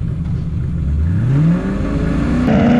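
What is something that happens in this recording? A car engine revs up, rising in pitch.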